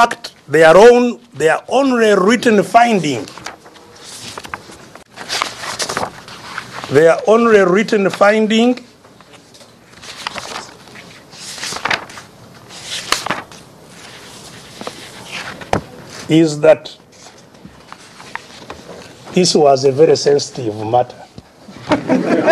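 An elderly man speaks slowly and emotionally into a microphone, pausing often.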